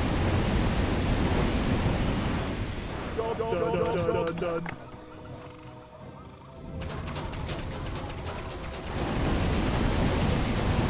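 Fiery explosions boom and crackle.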